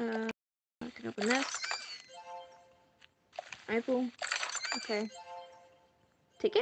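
A short sparkling chime rings as a treasure chest opens.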